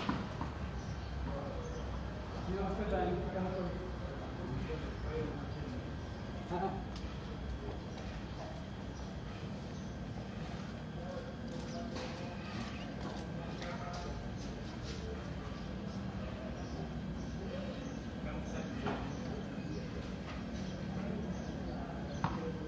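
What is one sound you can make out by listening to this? Footsteps scuff on a stone pavement.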